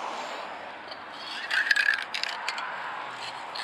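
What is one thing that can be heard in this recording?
A spray can's mixing ball rattles as the can is shaken.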